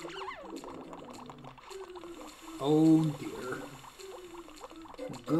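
Upbeat video game music plays steadily.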